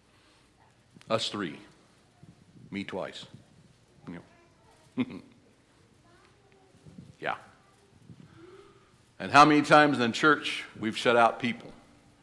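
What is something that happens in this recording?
An older man speaks through a microphone in a pausing, measured way, echoing slightly in a large room.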